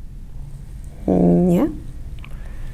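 A young woman answers briefly, close by.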